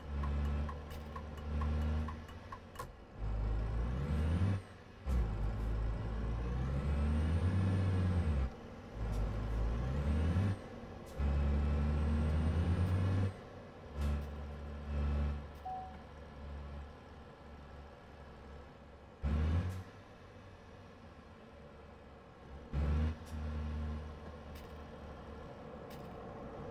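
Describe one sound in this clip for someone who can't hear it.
A truck engine rumbles low and revs up and down.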